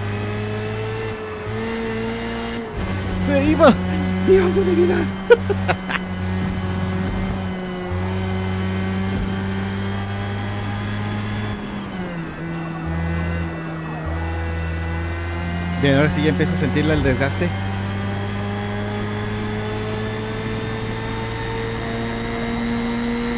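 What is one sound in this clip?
A racing car engine drones steadily and rises and falls with speed.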